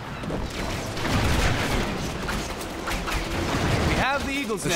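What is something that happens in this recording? Cannons boom and rumble in a sea battle.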